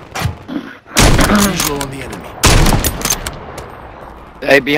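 A rifle fires loud shots close by.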